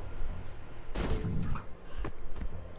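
A heavy body lands with a loud thud.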